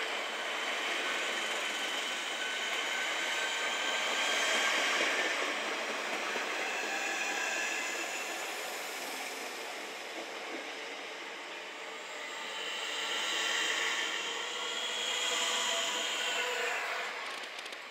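Electric train motors whine as a train pulls away.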